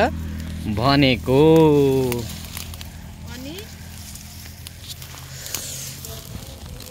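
Leaves and branches rustle as women pick through bushes.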